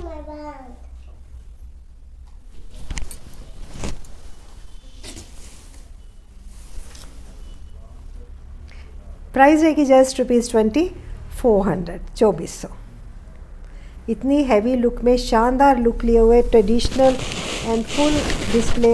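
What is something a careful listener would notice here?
A middle-aged woman speaks with animation close to the microphone.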